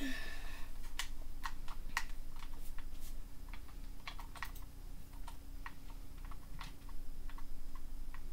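Blocks being dug in a video game crunch in short, quick taps through a television speaker.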